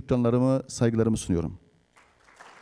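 A man speaks briefly through a microphone in a large hall.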